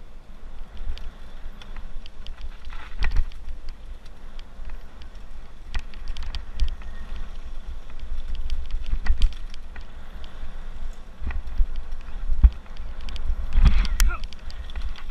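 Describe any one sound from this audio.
Bike tyres roll and crunch over a gravel trail at speed.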